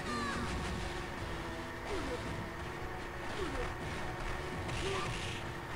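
Upbeat arcade game music plays steadily.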